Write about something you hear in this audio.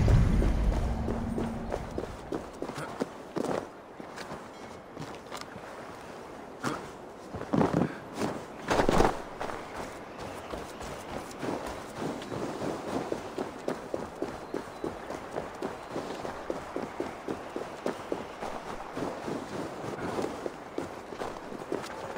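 Footsteps crunch through snow at a brisk pace.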